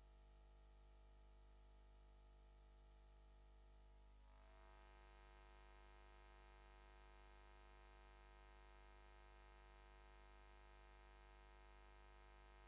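Soft music plays over loudspeakers.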